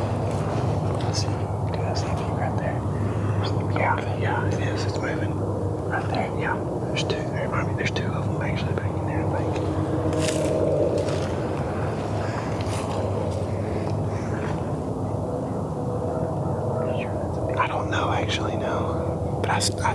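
A young man speaks quietly and close up, almost whispering.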